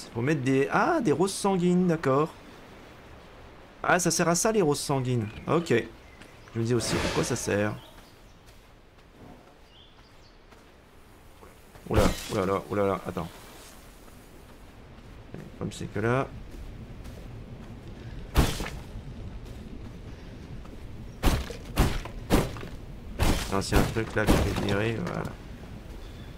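A young man talks with animation into a microphone, in bursts.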